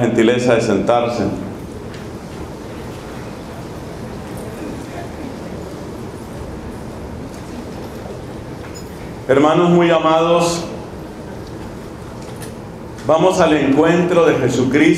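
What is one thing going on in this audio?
A man sings in phrases into a microphone, heard through loudspeakers in a large room.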